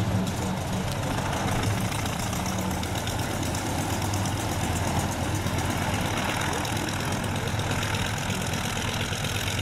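A small propeller plane's engine drones loudly nearby as it taxis.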